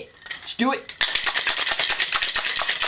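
A man shakes a cocktail shaker full of ice, rattling rhythmically.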